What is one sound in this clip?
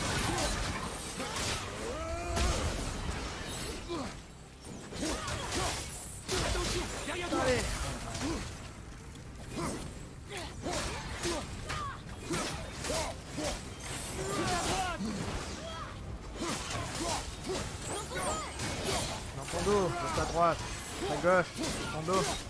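Fiery blasts and heavy blows crash loudly.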